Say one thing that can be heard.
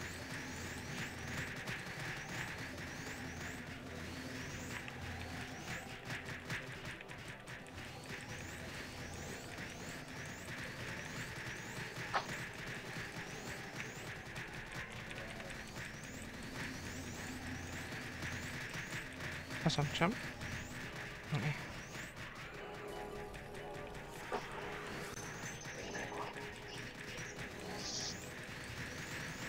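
Magic spell effects crackle and chime in a game battle.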